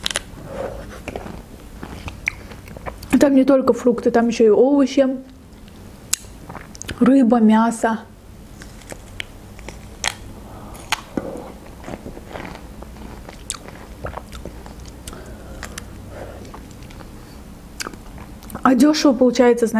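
Pomegranate seeds crunch and pop as a young woman chews them close to a microphone.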